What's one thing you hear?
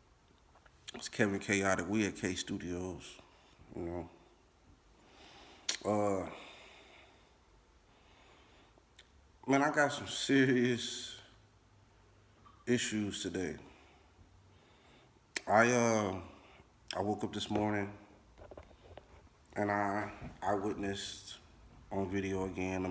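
A man speaks calmly and close to the microphone, in short bursts with pauses.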